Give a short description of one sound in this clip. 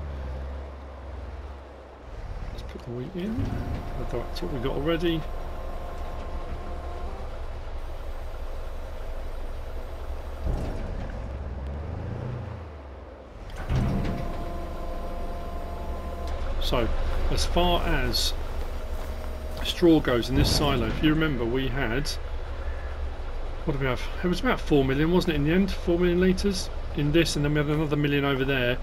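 A truck engine idles with a low, steady rumble.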